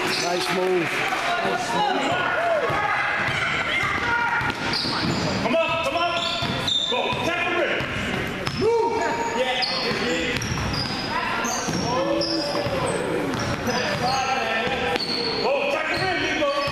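Sneakers squeak sharply on a wooden floor in a large echoing gym.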